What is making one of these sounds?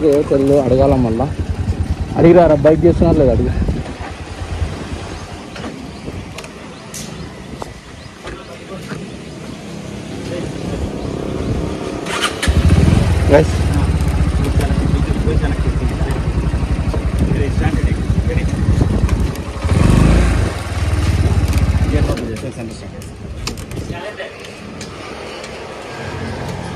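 A motorcycle engine idles with a steady low putter.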